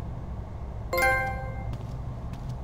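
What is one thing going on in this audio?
A short chime rings.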